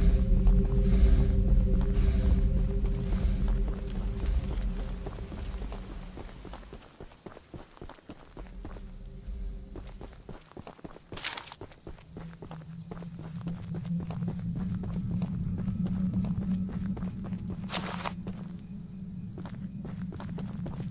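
Footsteps rustle and crunch through dry grass and brush.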